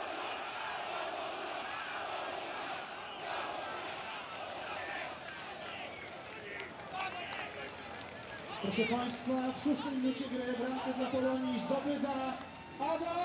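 A stadium crowd murmurs and chants steadily.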